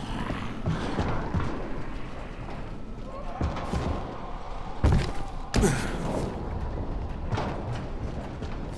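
Footsteps thud quickly across tin and wooden rooftops.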